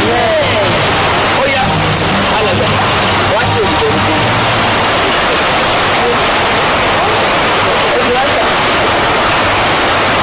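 Water trickles and flows over rocks in a stream.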